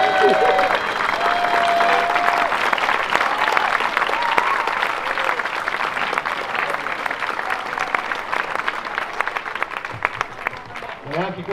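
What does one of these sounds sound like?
A crowd applauds outdoors.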